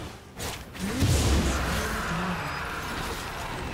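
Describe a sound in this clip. A deep booming blast rings out as a dragon is slain.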